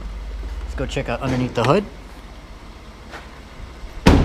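A car door opens with a click.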